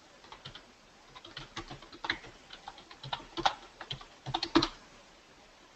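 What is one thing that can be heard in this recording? Keys clatter as someone types on a computer keyboard.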